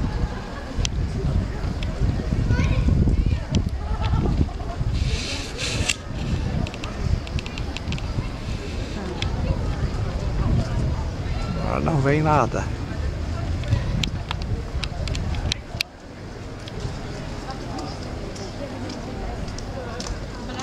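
A crowd of people chatter in the distance.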